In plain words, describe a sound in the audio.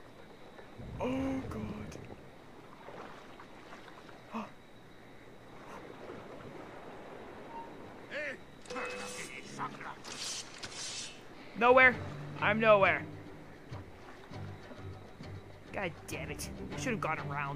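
Water splashes softly as a swimmer moves through it.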